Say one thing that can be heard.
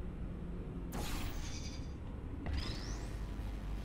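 A portal gun fires with a sharp electric zap.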